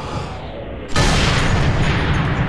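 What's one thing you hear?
A rifle fires with a loud, sudden crack.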